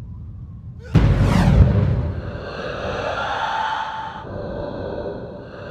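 A sudden heavy crash and whoosh sounds, then a ringing shimmer fades out.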